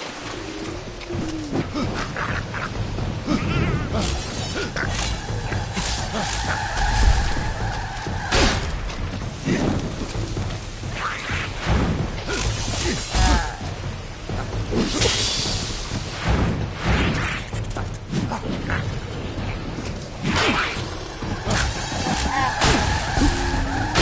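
Sword blows clash and thud in a game fight.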